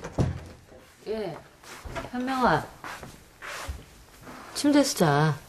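A young woman speaks nearby in a surprised, questioning tone.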